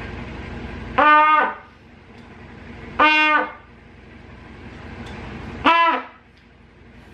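A girl plays short, loud held notes on a trumpet close by.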